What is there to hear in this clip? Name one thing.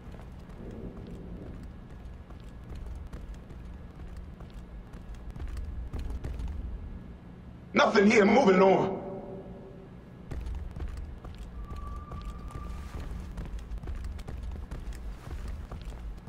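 Footsteps shuffle softly on a hard floor.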